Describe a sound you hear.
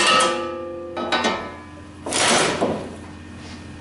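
Metal trays scrape and clank against the metal splitter.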